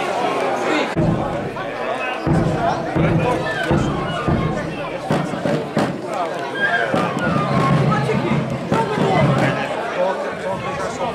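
Large drums boom and thump.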